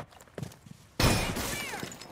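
Gunfire bursts out loudly.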